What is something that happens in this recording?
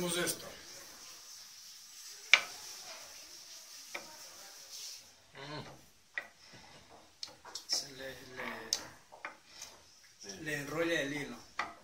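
A wooden block rubs and scrapes against a wooden board.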